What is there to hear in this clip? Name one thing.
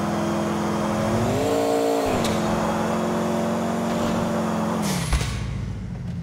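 A car engine roars loudly, rising and falling in pitch as it accelerates.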